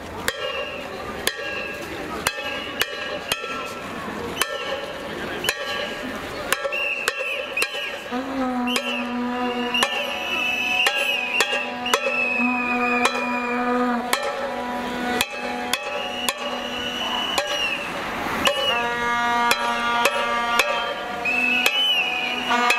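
A large crowd of protesters makes noise outdoors on a street.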